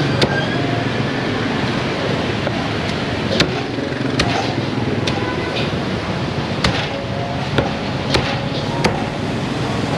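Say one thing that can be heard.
A cleaver chops sharply on a wooden block.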